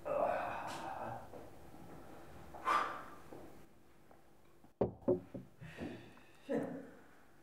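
Wooden chairs scrape and knock on a hard floor.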